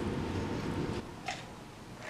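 A young woman sips a drink through a straw.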